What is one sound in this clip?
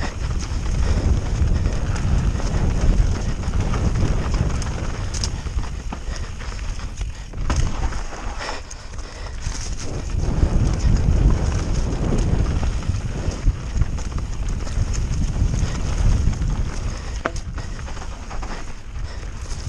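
Wind rushes loudly past a fast-moving mountain bike.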